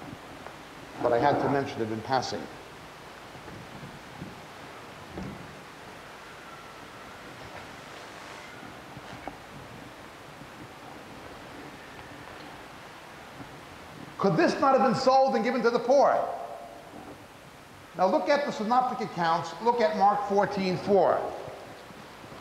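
A man speaks calmly into a microphone, in bursts with pauses.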